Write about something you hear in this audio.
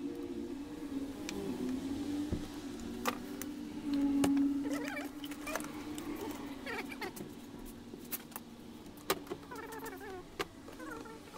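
Metal tools click and clink against a chainsaw part.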